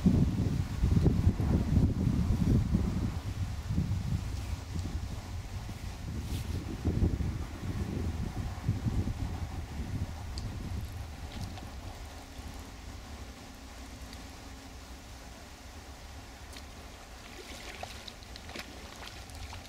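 Wind gusts across the microphone outdoors, strongest at first and then easing.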